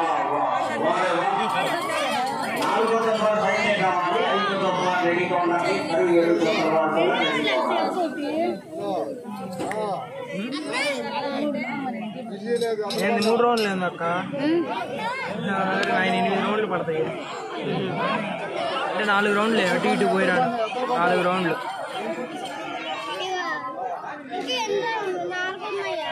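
A crowd of men shouts and cheers loudly outdoors.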